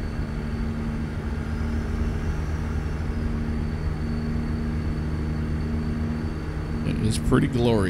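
A truck engine rumbles steadily while driving on a highway.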